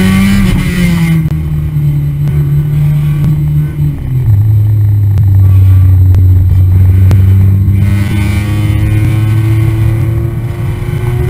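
A car engine drones loudly close by, its pitch shifting as gears change.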